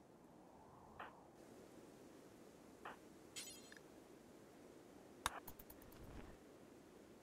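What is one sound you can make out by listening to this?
Short electronic clicks and blips sound now and then.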